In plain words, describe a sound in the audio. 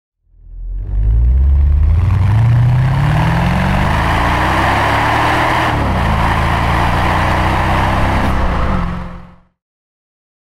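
A car engine revs up and roars as the car speeds along.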